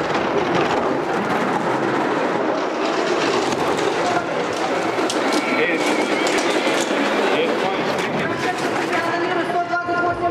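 A sled rushes and rumbles along an icy track.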